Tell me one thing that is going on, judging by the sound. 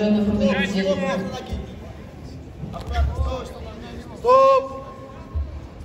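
Men in the crowd shout encouragement in a large hall.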